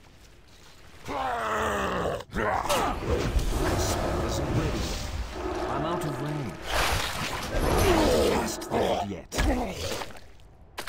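Magic blasts burst in a fight.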